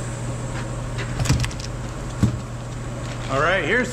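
A cardboard box thumps down onto a bench.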